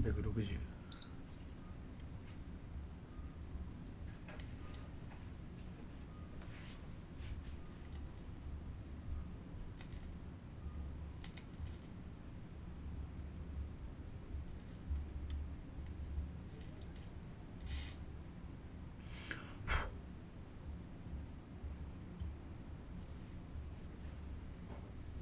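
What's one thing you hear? A soldering iron taps and scrapes lightly on metal contacts.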